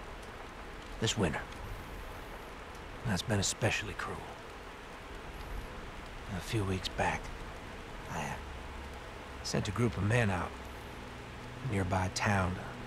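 A man speaks slowly in a low, calm voice.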